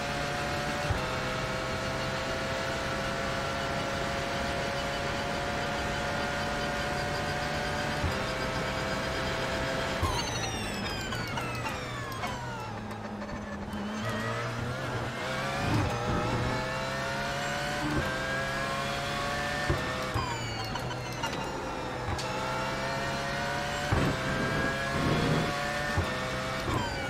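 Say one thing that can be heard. Gear changes snap with short sharp knocks.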